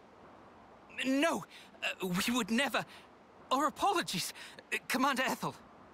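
A young man speaks hurriedly and nervously.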